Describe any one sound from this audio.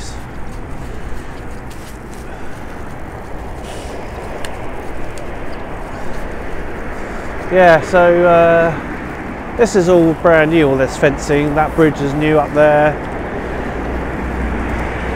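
Wind rushes past a person riding a bicycle outdoors.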